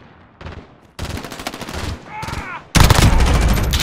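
An automatic rifle fires in rapid, loud bursts.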